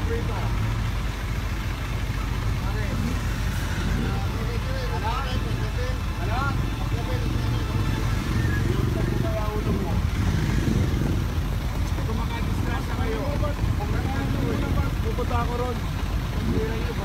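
A cloth rubs and squeaks against a truck's metal body.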